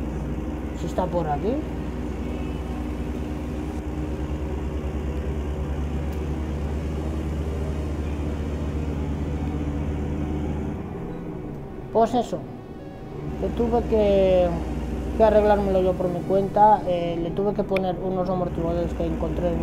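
A truck engine hums with a low, steady drone.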